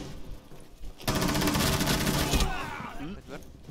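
Gunshots fire in a rapid burst close by.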